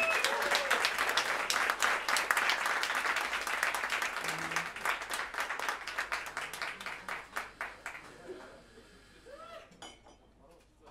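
An electric guitar plays a melody.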